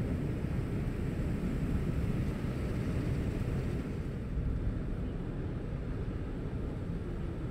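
Tyres roll and rumble on a paved road.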